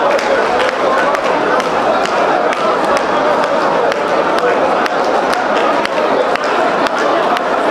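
A large crowd of men and women sings together loudly in an echoing hall.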